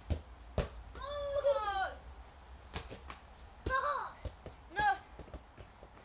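A young child squeals and shouts excitedly.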